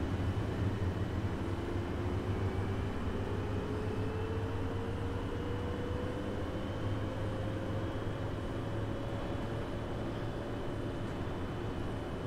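A bus engine whine slowly rises in pitch as the bus speeds up.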